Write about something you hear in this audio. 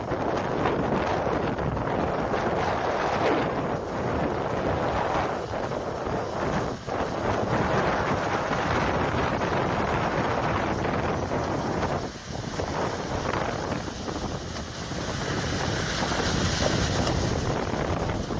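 Wind blows loudly outdoors.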